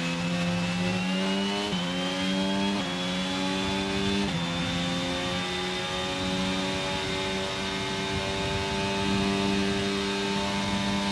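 Tyres hum on the track.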